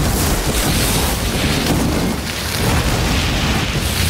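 Fire crackles and roars close by.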